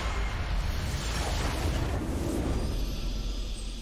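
A game's base explodes with a deep crashing boom.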